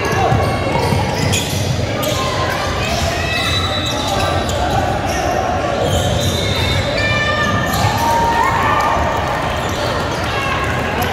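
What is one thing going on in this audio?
Young players shout to one another across the echoing court.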